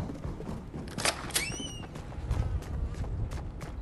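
A door swings open.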